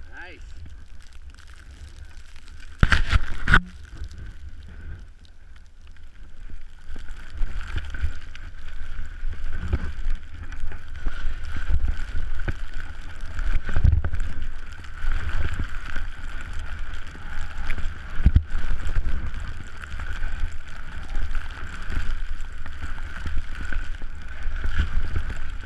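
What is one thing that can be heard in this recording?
Wind rumbles against a microphone.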